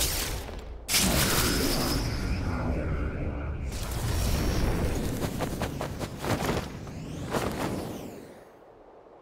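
A loud rushing whoosh roars.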